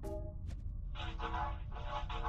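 A video game's dialogue box blips as text types out.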